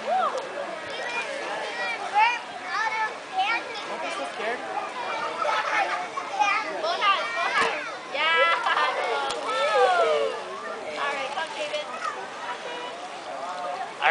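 A young woman talks to a child in a pool.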